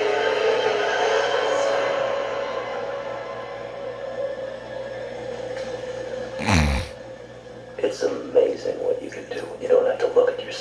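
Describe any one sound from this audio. Music plays from a television loudspeaker.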